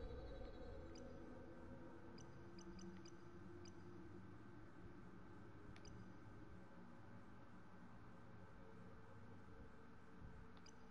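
Soft menu clicks tick now and then.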